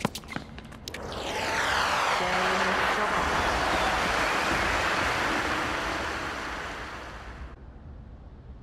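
A crowd cheers and applauds loudly, then fades.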